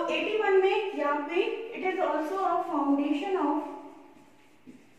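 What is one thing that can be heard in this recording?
A young woman speaks calmly and clearly nearby.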